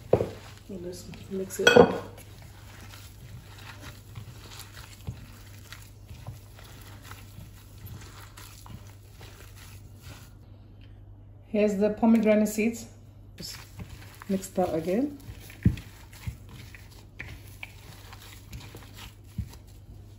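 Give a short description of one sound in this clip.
Gloved hands squish and mash soft food in a bowl.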